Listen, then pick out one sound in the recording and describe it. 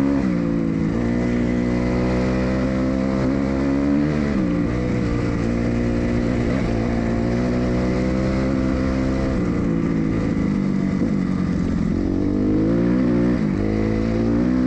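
A dirt bike engine buzzes loudly up close, revving up and down as gears shift.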